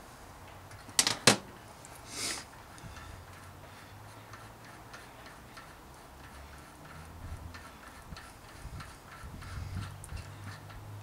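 A metal tool clicks and scrapes against a bicycle hub.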